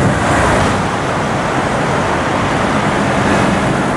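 A car engine hums as a car drives slowly past.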